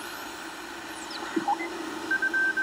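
A radio receiver whistles as its tuning knob is turned.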